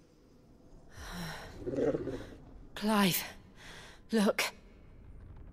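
A young woman calls out urgently, close by.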